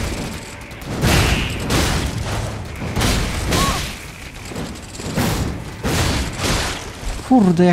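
Heavy blows strike and slash in a fight.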